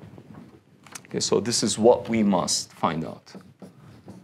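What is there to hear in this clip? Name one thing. A man speaks calmly nearby, as if lecturing.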